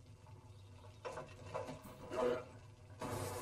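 A man speaks with animation into a headset microphone.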